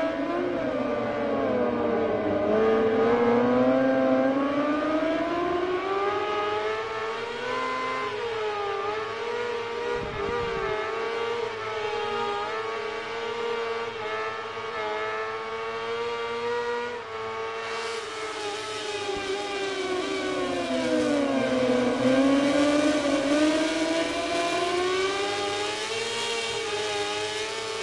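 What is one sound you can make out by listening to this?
Racing motorcycle engines whine loudly, rising and falling in pitch as the bikes speed up and slow down.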